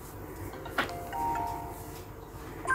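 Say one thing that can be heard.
A short bright chime plays for a level cleared.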